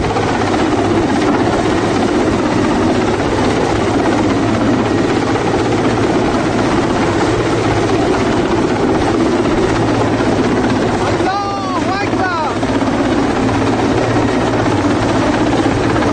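A helicopter's rotor thumps loudly overhead.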